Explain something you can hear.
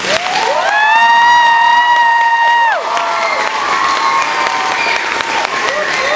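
Two women clap their hands.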